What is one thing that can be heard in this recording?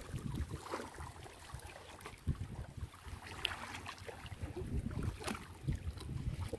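Water splashes as a man wades and slaps the surface.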